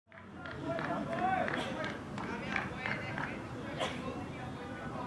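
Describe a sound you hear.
Men call out to each other across an open field.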